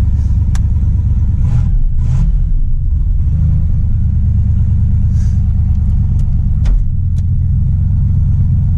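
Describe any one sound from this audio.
A car engine idles with a steady, deep rumble.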